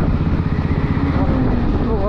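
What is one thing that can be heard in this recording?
A heavy truck rumbles past.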